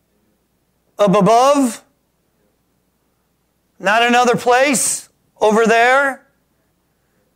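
A middle-aged man speaks with animation into a microphone, in short bursts separated by pauses.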